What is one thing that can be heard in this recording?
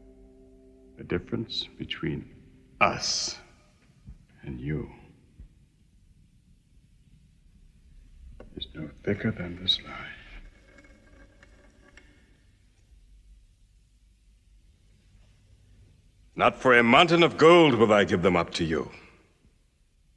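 An elderly man speaks in a deep, firm voice close by.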